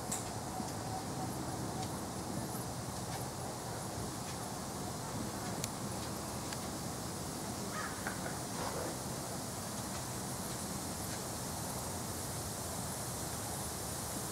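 Horse hooves thud on soft sand at a canter.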